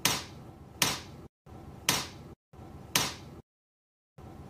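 Fingers tap on a keyboard.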